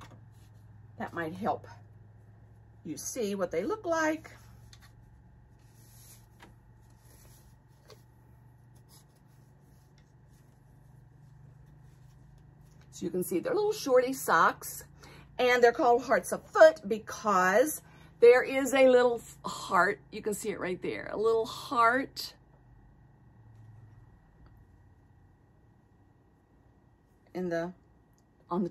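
A woman talks calmly and close to a microphone, in bursts with pauses.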